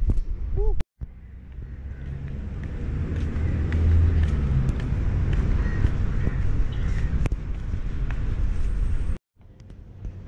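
Sandals slap on a paved walkway with each step.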